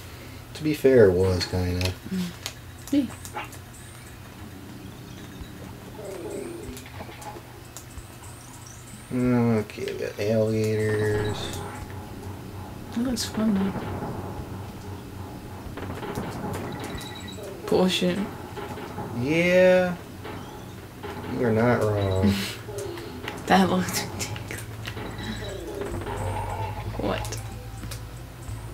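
Soft electronic game music plays steadily.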